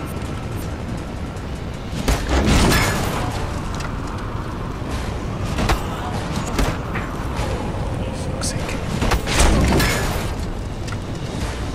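Blows and impacts thud during a brawl.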